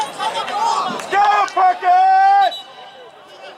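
Spectators cheer and shout loudly nearby.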